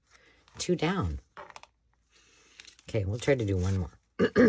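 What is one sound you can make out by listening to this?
Stiff paper rustles as it is handled.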